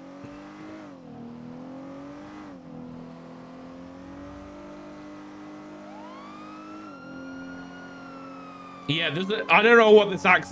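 A car engine hums steadily, its pitch dipping and rising as the car speeds along.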